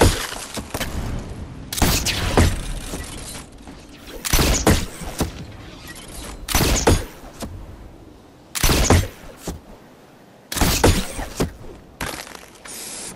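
Building pieces snap into place with loud bursts of clattering thuds.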